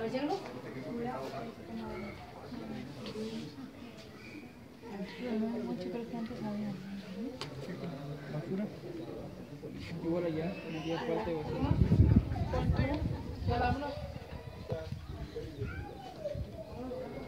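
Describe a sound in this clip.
A group of young men and women chat casually nearby, outdoors.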